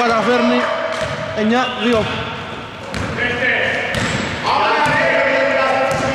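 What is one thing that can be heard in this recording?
A basketball bounces on a wooden floor in an echoing gym.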